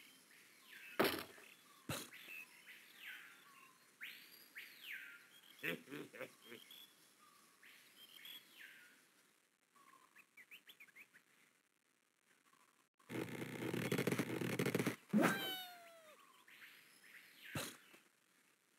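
Wooden blocks knock and crash.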